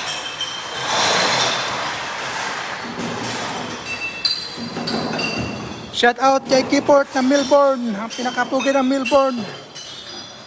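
Conveyor machinery rumbles and clatters steadily in a large echoing hall.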